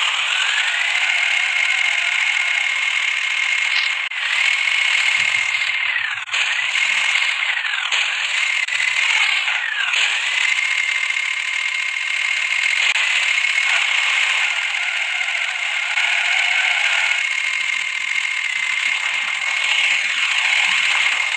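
A tractor engine drones steadily, revving up again and again.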